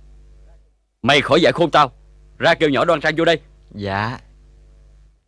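A middle-aged man answers in a firm, low voice close by.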